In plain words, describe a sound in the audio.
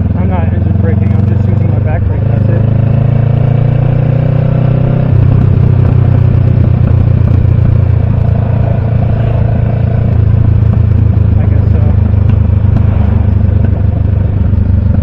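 A motorcycle engine rumbles steadily up close, changing pitch as it shifts.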